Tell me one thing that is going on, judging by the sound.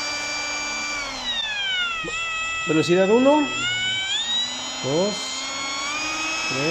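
A small electric router motor's pitch drops and then rises again as its speed changes.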